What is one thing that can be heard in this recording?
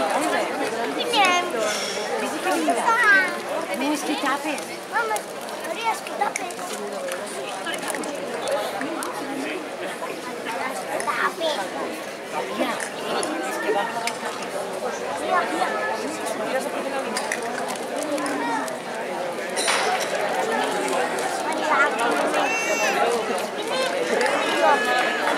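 Young children call out close by.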